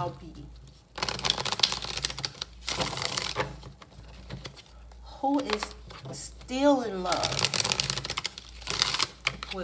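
Playing cards riffle and flutter as a deck is shuffled close up.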